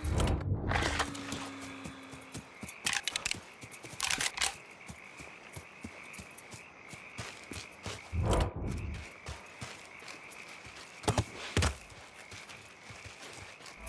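Insects chirp steadily at night.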